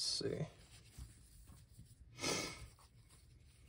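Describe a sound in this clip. Fabric rustles and crinkles as it is handled.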